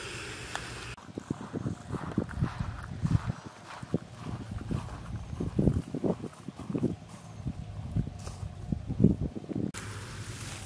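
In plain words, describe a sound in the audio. Footsteps swish through tall dry grass.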